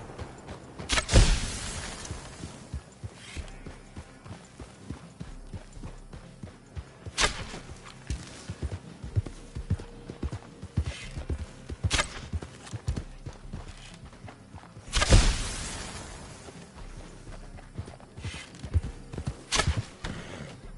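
Gunshots crack sharply, one at a time.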